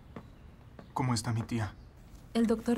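A man speaks quietly and tensely nearby.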